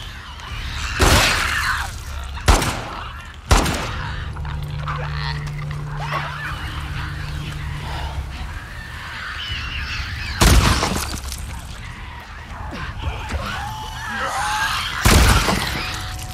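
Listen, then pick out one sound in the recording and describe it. Gunshots crack loudly, a few seconds apart.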